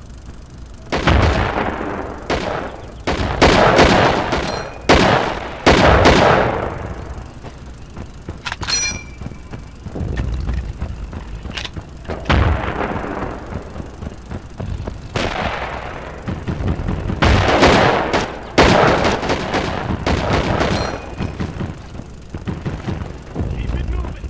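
Rifle shots crack loudly and echo away.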